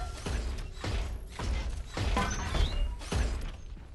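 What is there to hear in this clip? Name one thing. A heavy gun clanks and rattles as it is readied.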